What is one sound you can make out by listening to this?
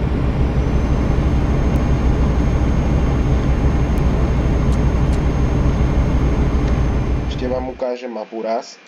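A truck engine rumbles steadily as it drives along.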